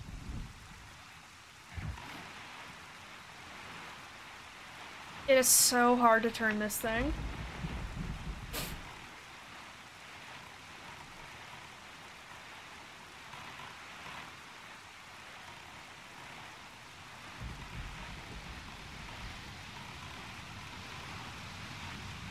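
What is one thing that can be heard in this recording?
Rain and wind rush steadily over the sea.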